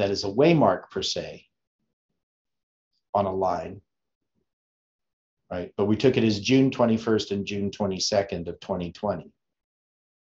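An older man speaks calmly and close to a microphone, in short bursts with pauses.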